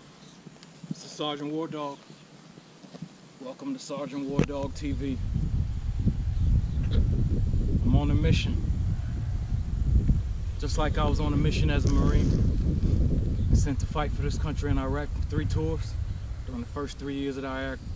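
A man speaks calmly outdoors, coming closer.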